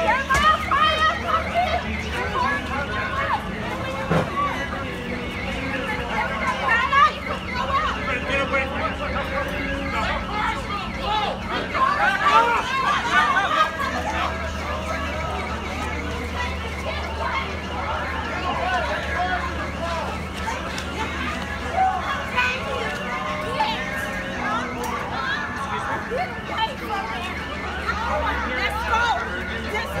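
A crowd of men and women talk and shout excitedly nearby, outdoors.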